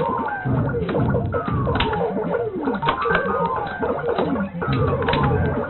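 A vintage arcade game plays falling electronic tones.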